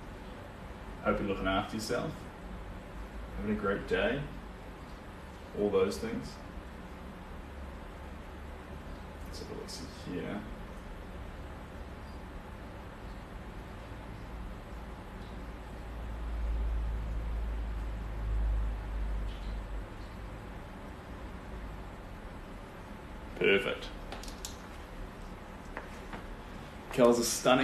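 A young man speaks close by, calmly and cheerfully.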